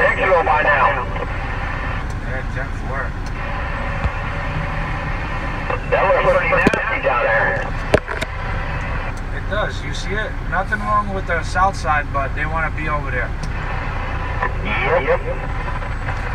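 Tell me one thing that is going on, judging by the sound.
A radio loudspeaker crackles with bursts of distorted chatter.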